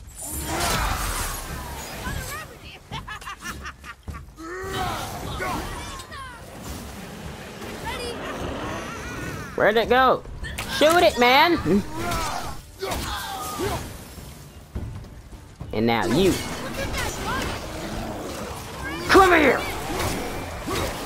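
Heavy axe blows strike and slash in a fight.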